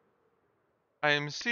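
A man speaks into a headset microphone, close and clear.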